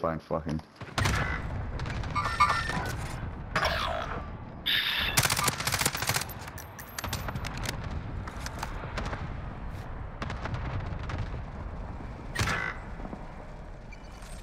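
Gunshots crack rapidly and repeatedly.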